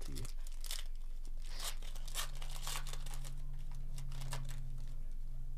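A foil pack crinkles and tears as hands rip it open.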